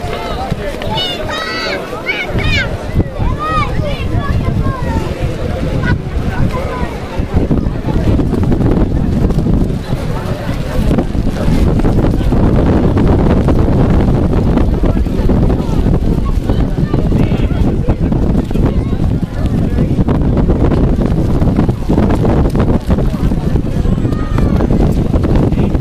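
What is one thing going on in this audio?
Players call out to each other on the field.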